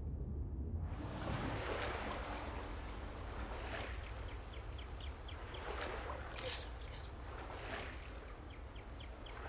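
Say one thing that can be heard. Water splashes loudly as a swimmer paddles through it.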